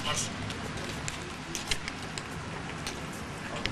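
Footsteps click on pavement outdoors.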